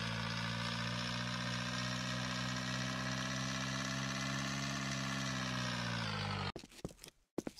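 A small motor engine hums steadily, then winds down and stops.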